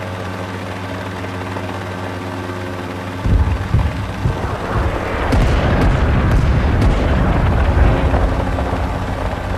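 A helicopter's rotor thumps steadily as it flies.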